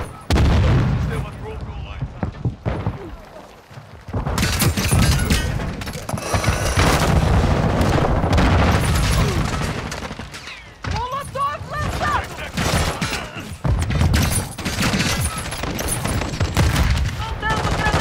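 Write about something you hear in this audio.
Automatic rifle gunfire bursts in a video game.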